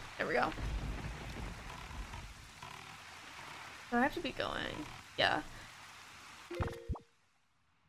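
Rain pours down steadily.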